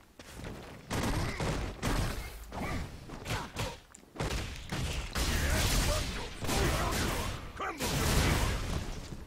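Punches and kicks land with sharp impacts in a fighting game.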